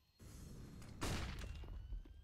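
A flash grenade goes off with a sharp bang.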